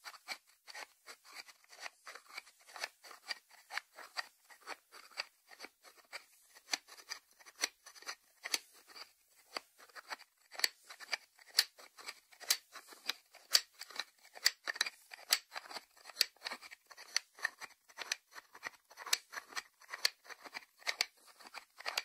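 Fingertips tap quickly on the lid of a ceramic salt dish.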